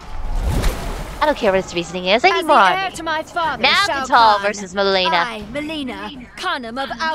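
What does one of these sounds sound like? A young woman speaks with confident animation.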